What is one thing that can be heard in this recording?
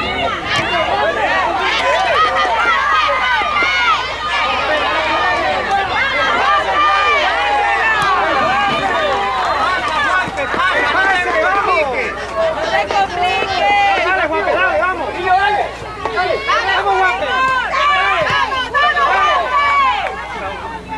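A crowd of spectators shouts and cheers excitedly outdoors.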